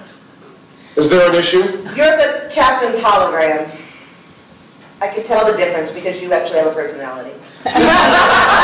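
A woman speaks to a man.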